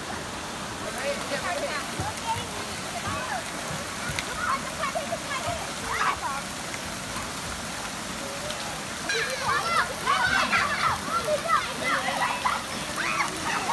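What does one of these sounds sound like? Children shout and laugh as they play in water.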